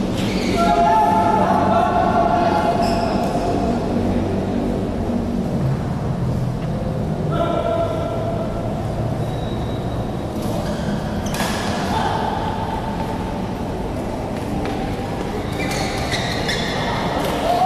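Rackets smack a shuttlecock.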